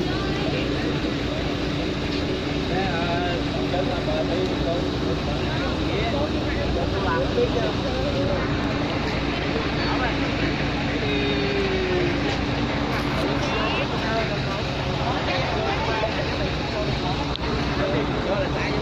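Several men and women talk over one another nearby, outdoors.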